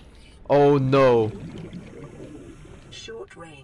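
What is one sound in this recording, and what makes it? Water swishes softly as a diver kicks through it underwater.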